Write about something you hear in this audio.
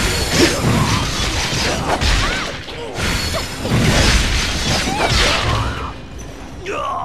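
Weapons clash and strike with heavy impacts.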